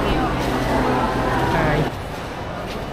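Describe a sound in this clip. A crowd of people chatter nearby in a large echoing hall.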